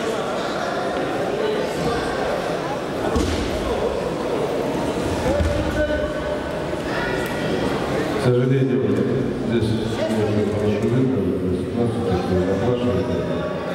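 A crowd of men murmurs and chatters in a large echoing hall.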